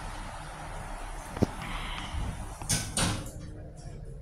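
Elevator doors slide shut with a soft rumble.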